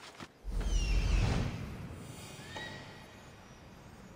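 An eagle screeches.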